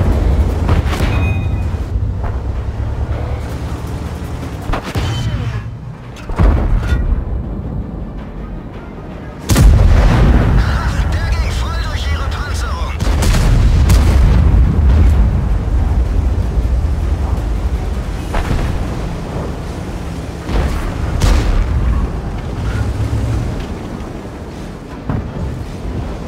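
Tank guns fire with loud booms.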